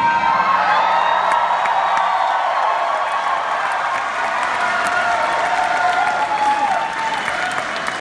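An electric guitar plays a melody through an amplifier in a large hall.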